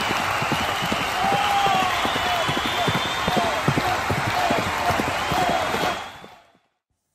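Horses gallop with pounding hooves.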